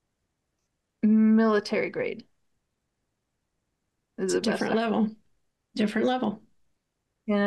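A middle-aged woman speaks with animation over an online call, in short bursts.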